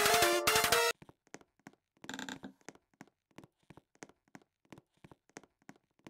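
Game footsteps tap at an even pace.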